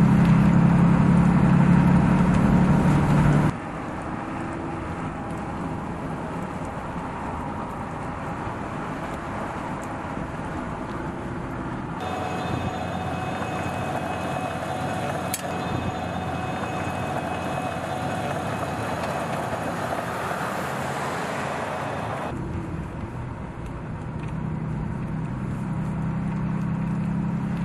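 A pickup truck engine hums as it drives along.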